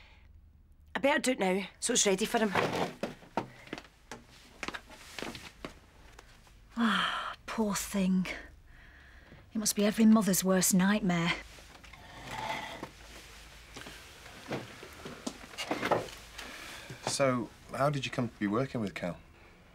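A second woman answers calmly and close by.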